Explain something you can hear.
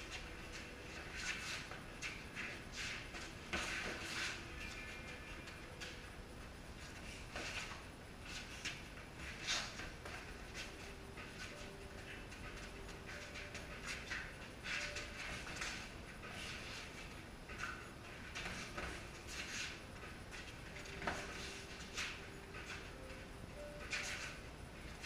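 Boxing gloves thud against each other and against pads in quick bursts.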